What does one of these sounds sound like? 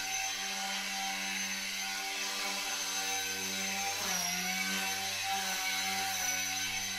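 A small toy helicopter whirs with a steady buzzing hum.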